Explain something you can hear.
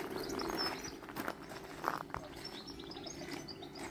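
Footsteps crunch on gravel nearby.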